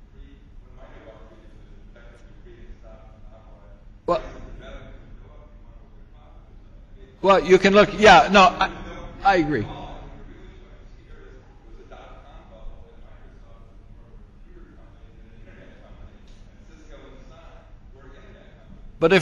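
A man speaks steadily into a microphone in a large room.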